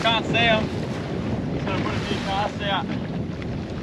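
A man calls out nearby.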